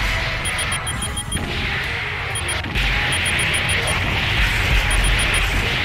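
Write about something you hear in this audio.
Explosions boom and rumble in a video game.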